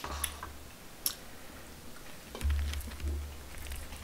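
A young man gulps a drink from a bottle.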